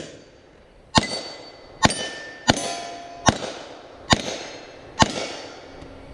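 Pistol shots ring out in quick succession outdoors.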